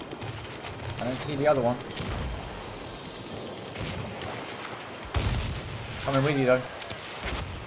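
A man speaks briefly through a microphone.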